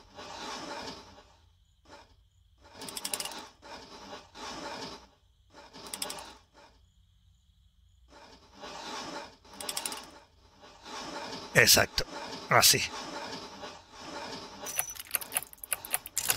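Metal pipe pieces clank and click as they turn into place.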